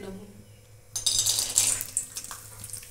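Peanuts rattle into a metal wok.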